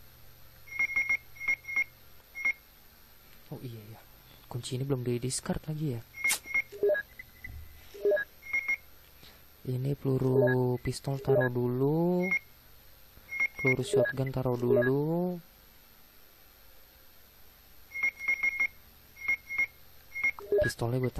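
Short electronic menu beeps chirp in quick bursts.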